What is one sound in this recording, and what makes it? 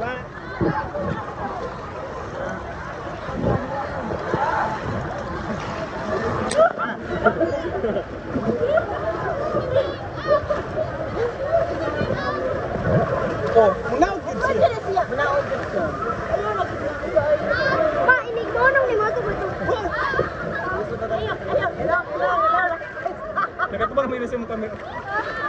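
Waves splash and churn loudly.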